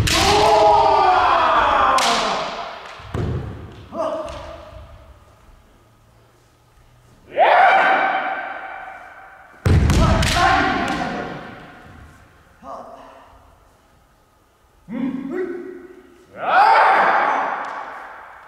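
Young fencers shout loud, drawn-out cries that ring through a large echoing hall.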